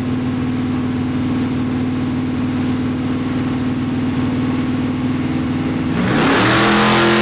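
A loud V8 engine idles roughly.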